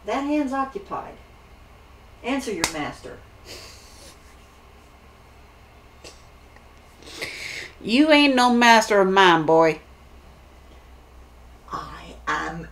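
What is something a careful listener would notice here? A young woman talks close by with animation, pausing now and then.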